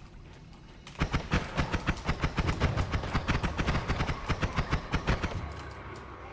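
A laser weapon fires in rapid bursts.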